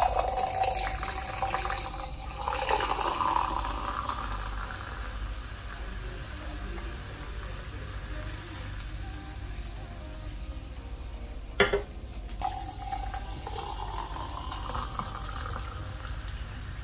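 Liquid pours into a glass over ice, fizzing.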